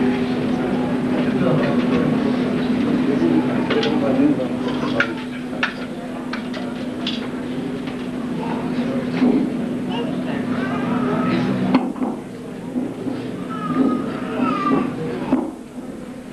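A man speaks into a microphone in a large room, his voice echoing through loudspeakers.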